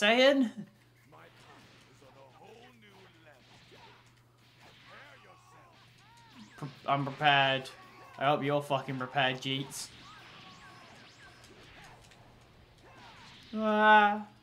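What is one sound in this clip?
Energy blasts whoosh and crackle during a fight.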